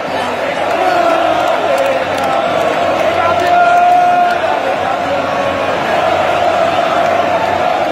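Fans nearby clap their hands.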